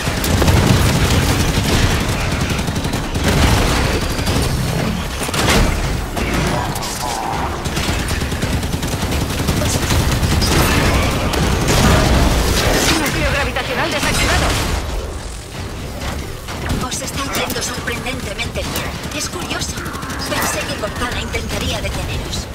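Heavy gunfire blasts and rattles in rapid bursts.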